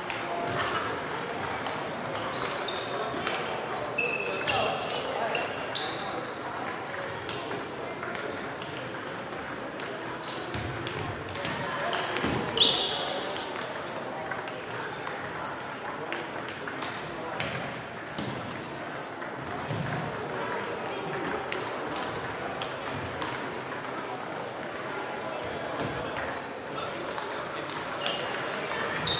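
Sports shoes squeak on the wooden floor.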